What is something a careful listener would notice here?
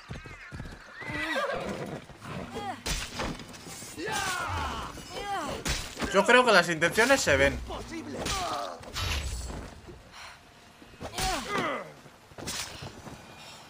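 Men grunt and shout in battle.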